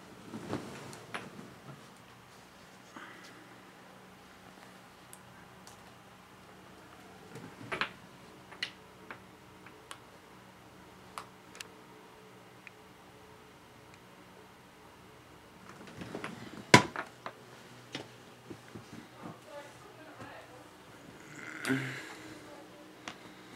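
A young man speaks softly close by.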